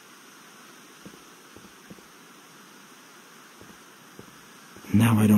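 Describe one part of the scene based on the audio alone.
Footsteps tap lightly on gravelly ground.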